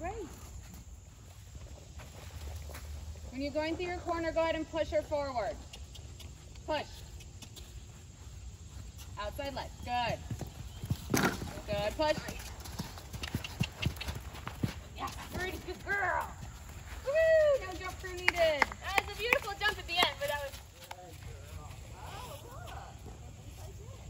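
A horse's hooves thud on soft sand as it canters.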